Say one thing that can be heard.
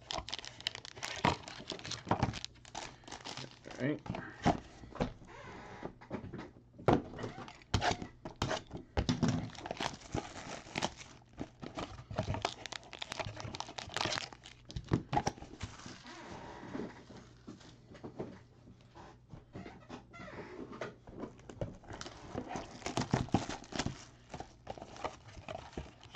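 Card packs and wrappers rustle and crinkle as hands handle them close by.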